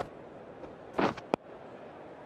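A cricket bat knocks a ball with a sharp crack.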